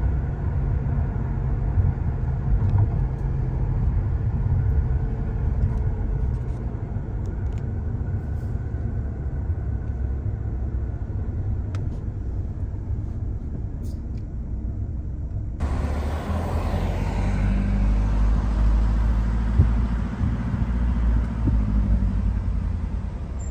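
A car hums and rumbles steadily from inside as it drives along a road.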